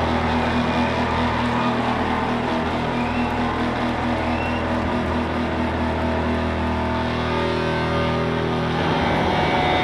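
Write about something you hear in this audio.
Amplified guitars hold a loud droning chord in a large echoing hall.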